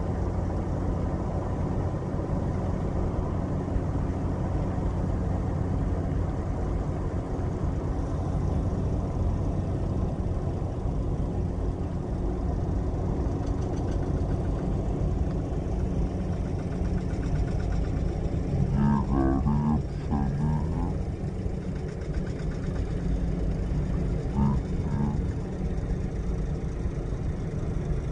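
A heavy diesel truck engine drones as it slowly pulls a heavy load.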